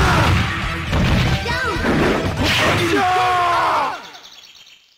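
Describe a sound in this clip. Punches and kicks land with sharp hits.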